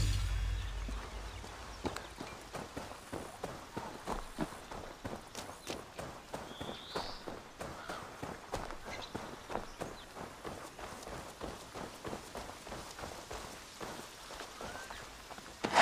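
Footsteps run quickly over grass and gravel.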